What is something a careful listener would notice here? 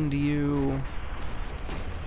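An explosion booms.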